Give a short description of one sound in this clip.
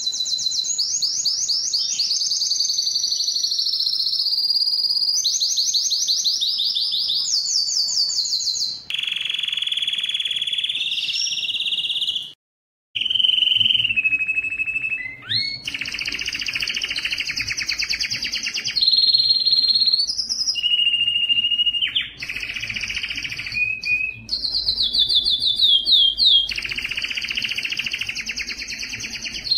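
A canary sings close by in loud, rapid trills and warbles.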